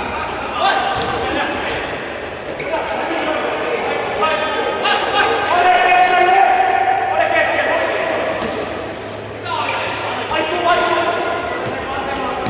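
A futsal ball is kicked on a hard indoor court.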